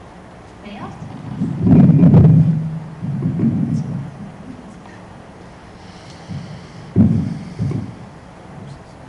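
A man speaks through a microphone at a moderate distance.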